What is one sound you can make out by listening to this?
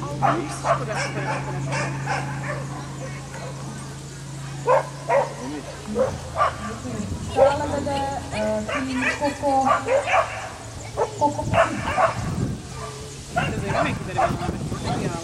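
A woman shouts short commands to a dog outdoors.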